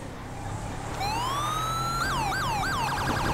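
A police siren wails and yelps close by.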